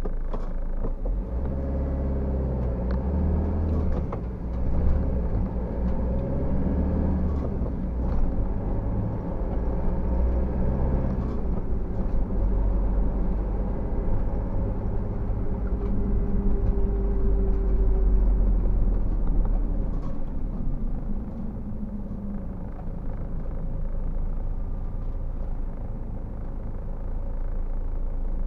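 A car engine hums steadily from inside the car as it drives along a road.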